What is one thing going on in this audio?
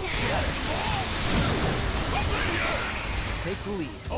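A heavy hit lands with a crunching impact.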